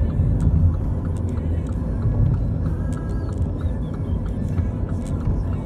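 A car engine hums steadily with a low road rumble from inside a moving vehicle.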